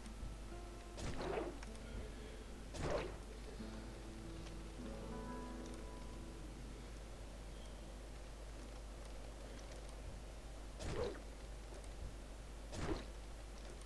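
Short whooshing game effects sound now and then as plants are pulled up.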